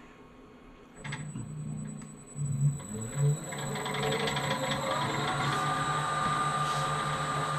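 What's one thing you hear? A wood lathe motor starts and runs with a steady whirring hum.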